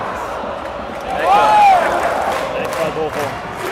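Fans close by cheer and shout.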